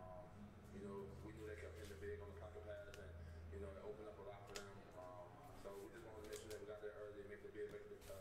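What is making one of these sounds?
Trading cards slide and tap softly against each other.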